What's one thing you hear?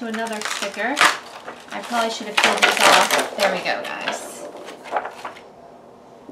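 A plastic sheet crinkles and rustles as it is handled.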